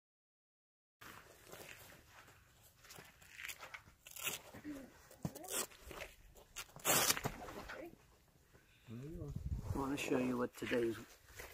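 Hands rustle and click while fastening clips onto shoes.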